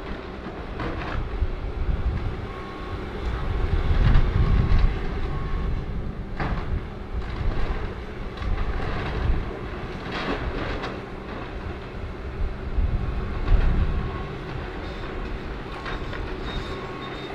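A diesel excavator engine rumbles under load.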